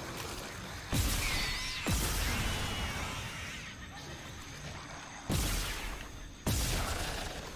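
Gunshots bang loudly.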